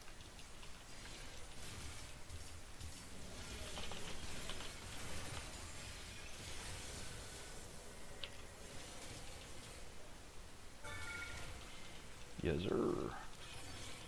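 Magic spells whoosh and crackle in a fast fight.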